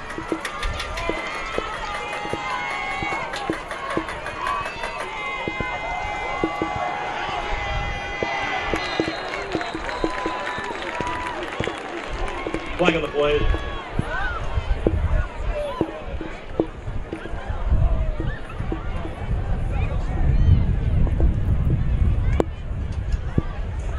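A crowd murmurs and cheers outdoors at a distance.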